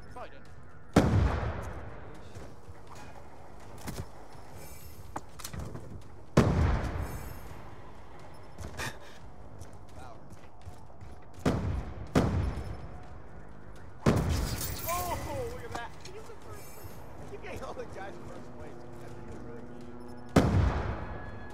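Loud gunshots boom in sudden bursts, each followed by a rumbling echo.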